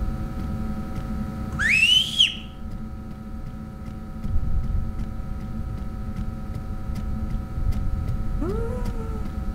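A light buzzes with a low, steady electric hum.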